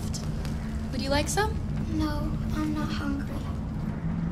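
A young girl answers quietly.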